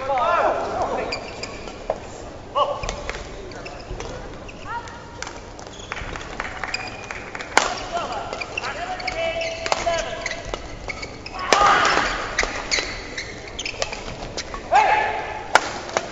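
Badminton rackets strike a shuttlecock back and forth in a large indoor hall.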